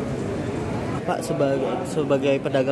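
An older man speaks warmly, close to the microphone.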